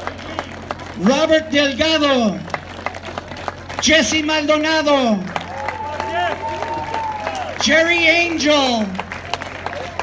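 A man sings loudly through a microphone and loudspeakers outdoors.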